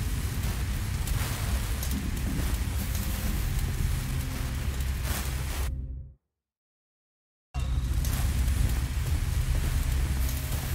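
A flare burns with a steady, rushing hiss.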